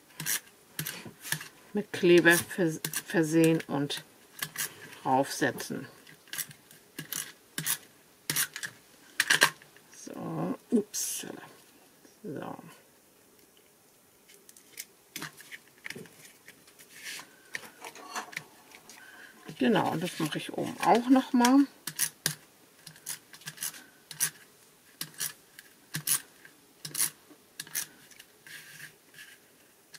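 Light plastic mesh clicks and taps against a table.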